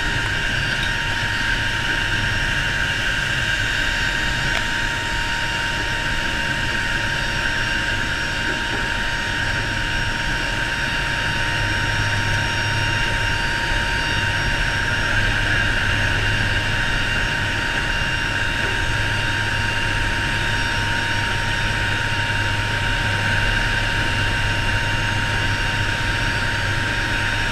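Wind rushes through an open door.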